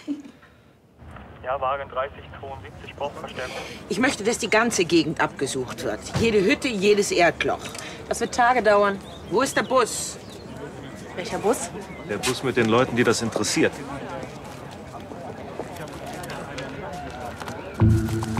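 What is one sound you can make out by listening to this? Several men and women talk with animation outdoors.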